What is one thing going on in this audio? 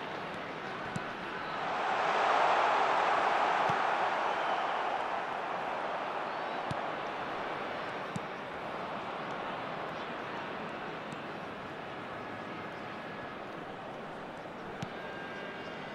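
A football is kicked with sharp thumps now and then.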